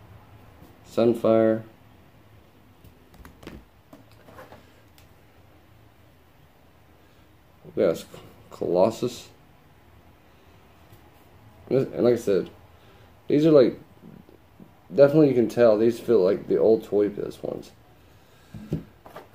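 A man talks calmly close by, in short bursts with pauses.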